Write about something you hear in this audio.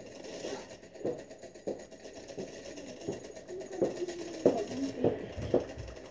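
Gunshots from a video game sound through a television speaker in bursts.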